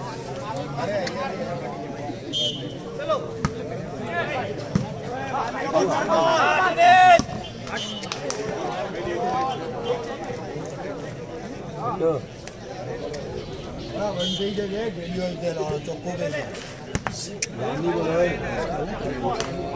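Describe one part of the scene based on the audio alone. Players shout to each other during a volleyball rally.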